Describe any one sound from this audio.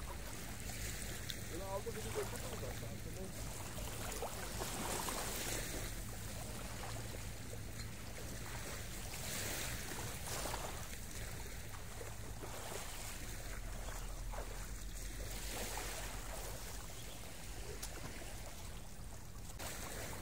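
Small waves lap and splash gently close by.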